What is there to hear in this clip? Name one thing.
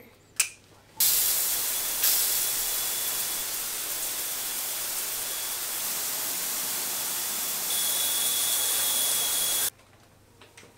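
A shower sprays water steadily onto tiles.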